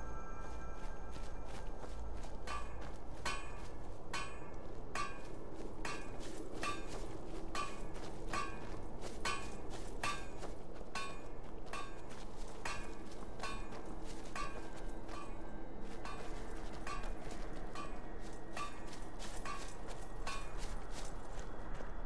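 Footsteps crunch steadily over grass and gravel.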